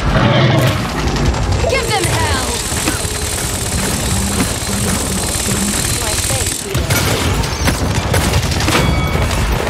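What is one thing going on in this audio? A game's gunfire and weapon effects crack and boom in quick bursts.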